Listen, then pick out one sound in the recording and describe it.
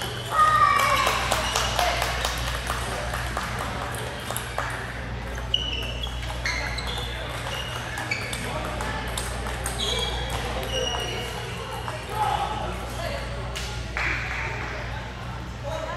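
Ping-pong balls click back and forth on paddles and tables in a large echoing hall.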